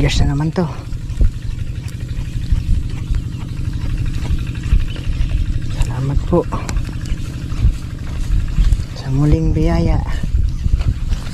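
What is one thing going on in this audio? Hands rub and tap a plastic bottle wound with fishing line.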